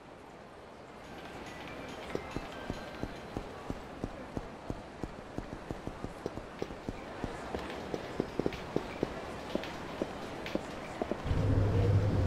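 Footsteps patter quickly on pavement as a man runs.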